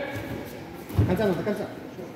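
A body thuds heavily onto a mat.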